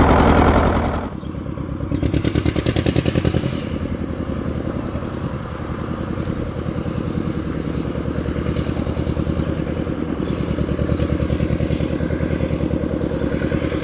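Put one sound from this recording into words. An old tractor engine chugs steadily close by, revving up briefly.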